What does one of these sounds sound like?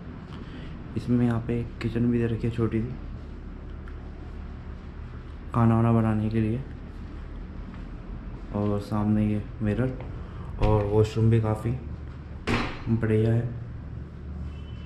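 A young man talks calmly close by, in short bursts.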